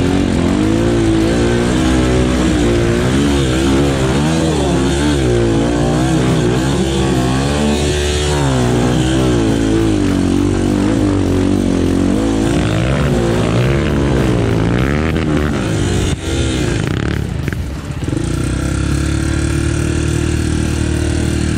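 A dirt bike engine revs up and down nearby.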